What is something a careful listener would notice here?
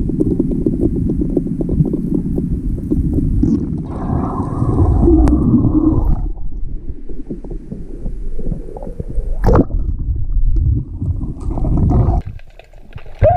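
Water rushes and rumbles around a swimmer underwater.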